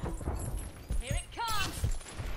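A game energy weapon whooshes and zaps with a rising burst.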